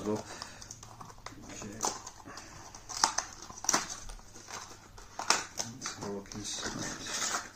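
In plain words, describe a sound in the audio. Cardboard packaging rustles and scrapes as hands open it.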